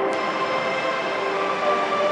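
Young girls sing together in an echoing hall.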